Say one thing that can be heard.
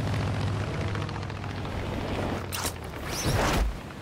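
Wind rushes past during a fall.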